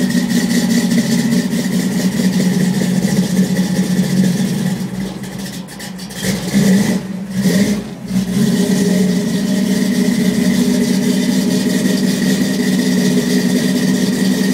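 An engine idles with a steady low rumble, heard from inside a vehicle.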